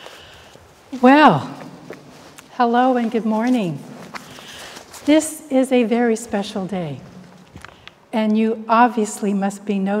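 An elderly woman chants in a sung voice, close by and clear, in an echoing room.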